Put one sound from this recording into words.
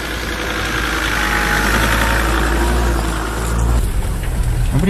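An off-road vehicle's engine rumbles as it drives slowly past.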